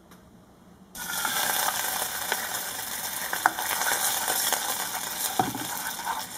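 Milk sizzles and bubbles in a hot pan.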